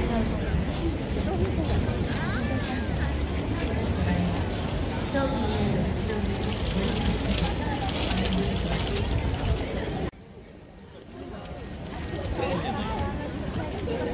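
A busy street crowd chatters all around outdoors.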